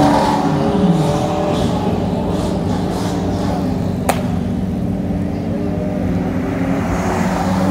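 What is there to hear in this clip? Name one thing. A sports car engine rumbles steadily as the car approaches slowly.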